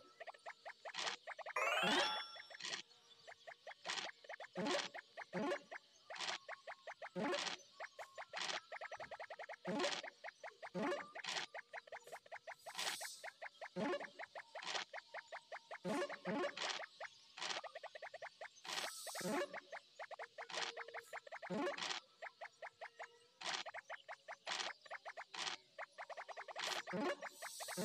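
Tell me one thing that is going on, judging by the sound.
Game pieces tick quickly as they hop from square to square.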